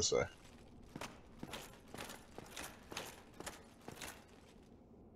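Armoured footsteps clank on stone at a steady pace.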